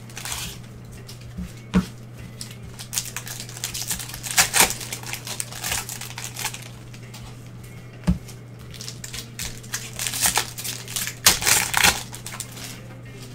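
Gloved hands rustle and crinkle plastic card wrappers.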